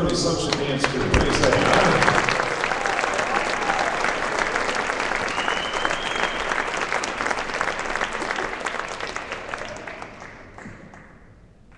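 A crowd cheers and applauds loudly, then fades.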